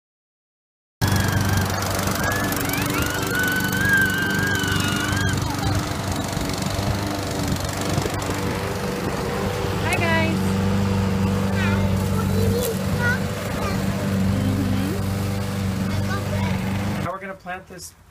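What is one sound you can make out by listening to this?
A lawn mower engine hums steadily nearby.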